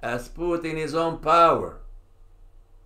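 An elderly man reads out aloud, close to a microphone.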